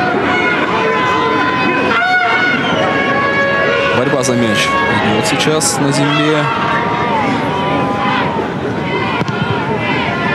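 Men shout and call out on a sports field.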